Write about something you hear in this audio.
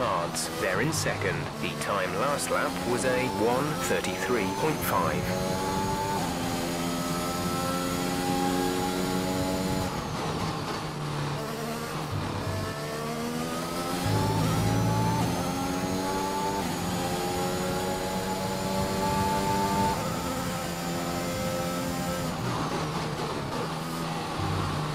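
A racing car engine roars at high revs, rising in pitch and dropping with each gear change.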